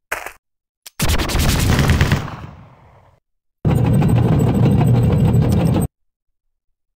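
Loud crashing battle blasts rumble in short bursts.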